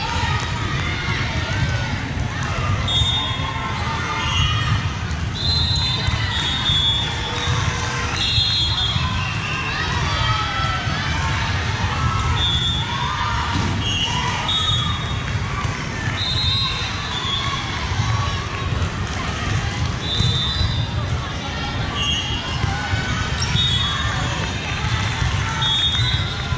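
A crowd of spectators chatters throughout in a large echoing gym.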